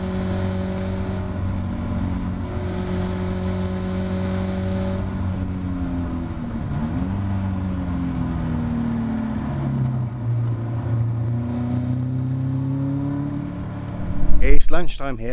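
A race car engine roars steadily, shifting up and down in pitch.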